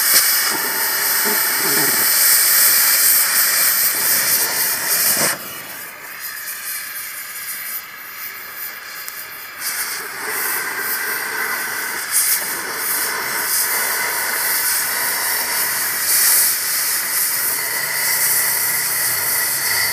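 A gas cutting torch hisses and roars steadily against metal.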